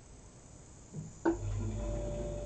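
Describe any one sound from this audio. A truck engine starts with a clatter.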